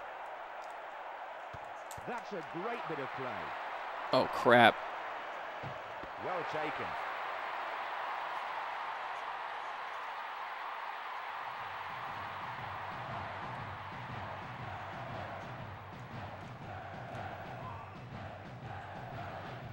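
A stadium crowd roars steadily from a football game.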